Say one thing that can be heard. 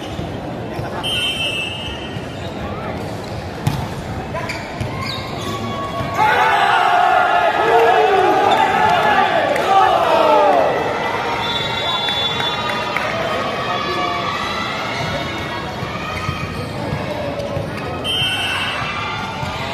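Shoes squeak on a wooden court.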